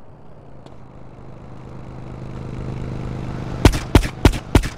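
A motorcycle engine rumbles past.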